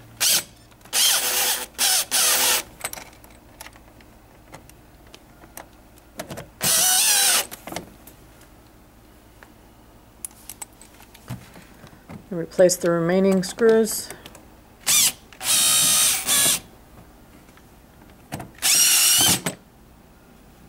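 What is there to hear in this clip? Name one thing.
A cordless drill-driver whirs in short bursts, driving screws.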